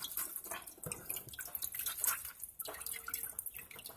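Cooked noodles squish and rustle as hands toss them.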